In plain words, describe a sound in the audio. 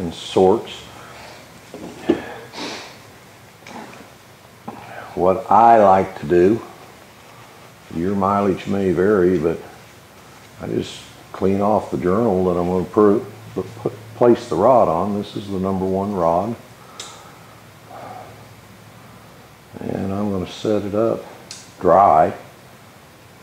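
A middle-aged man speaks calmly and explains, close by.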